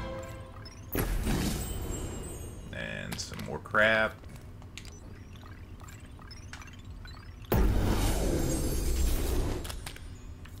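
A game menu plays loud whooshing reveal sounds.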